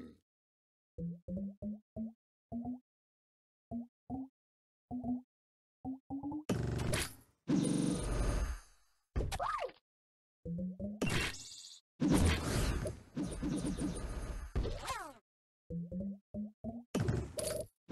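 Short bright game chimes ring out in quick runs.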